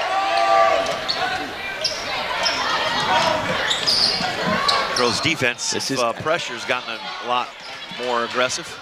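A large crowd murmurs and cheers in a big echoing gym.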